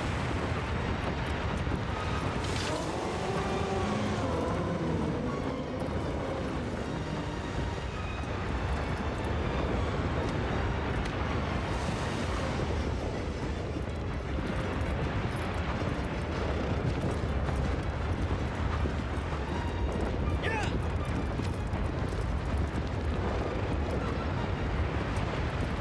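A horse gallops with heavy hoofbeats on sand.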